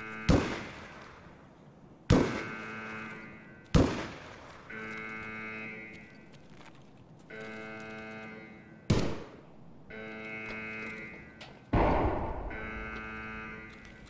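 Rifle shots crack loudly, each followed by a rolling echo.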